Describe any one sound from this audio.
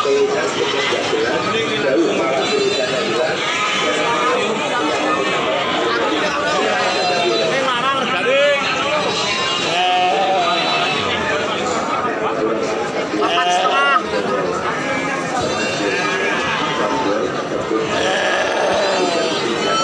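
A crowd of men chatter nearby.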